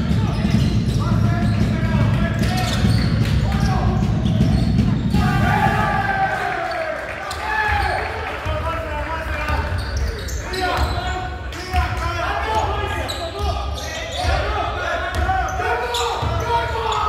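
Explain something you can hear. Players call out to each other loudly.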